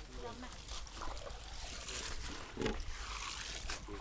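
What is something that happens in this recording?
Hands rustle and toss greens in a metal basin.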